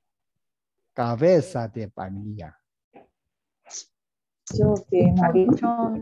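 A man speaks with animation over an online call.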